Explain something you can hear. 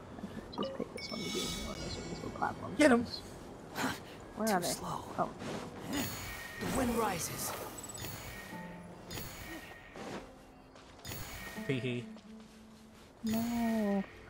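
Magical chimes ring out as glowing particles are collected.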